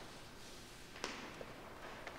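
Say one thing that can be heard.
A book thumps softly onto a wooden stand.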